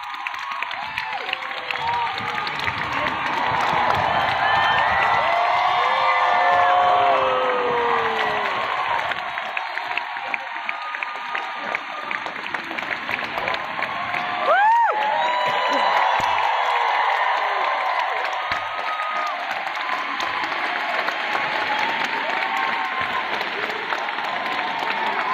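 Women in the crowd shout and scream with excitement close by.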